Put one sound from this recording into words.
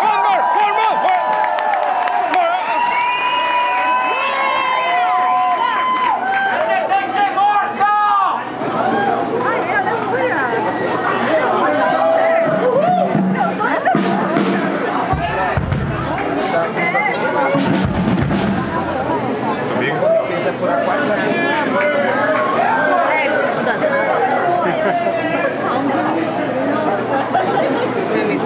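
A drum kit is played along with the band.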